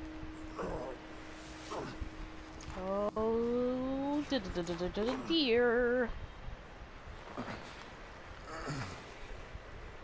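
A body drags slowly across crunching snow.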